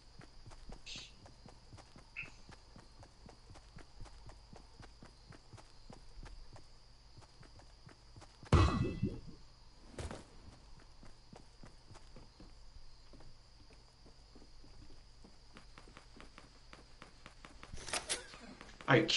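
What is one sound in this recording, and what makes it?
Footsteps patter quickly on grass and wooden boards.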